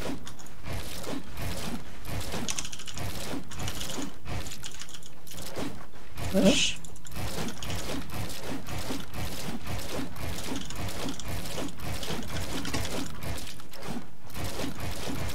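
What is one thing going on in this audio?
Mechanical keyboard keys clack rapidly and steadily up close.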